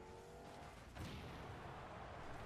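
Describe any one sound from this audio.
A video game explosion booms.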